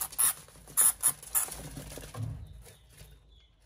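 Small animals scuffle and rustle in dry wood shavings.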